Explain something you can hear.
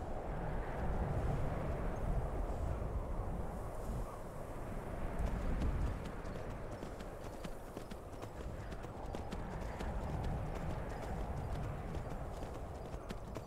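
A horse's hooves crunch steadily through snow.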